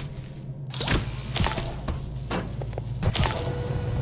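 An electric laser beam hums and crackles.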